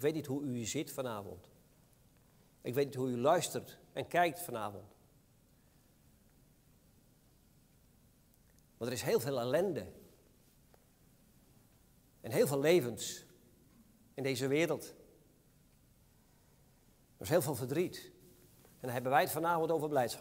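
A middle-aged man speaks calmly through a microphone in bursts with long pauses, in an echoing hall.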